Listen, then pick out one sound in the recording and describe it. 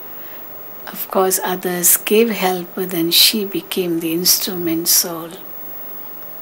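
An elderly woman speaks slowly and calmly into a microphone over a loudspeaker.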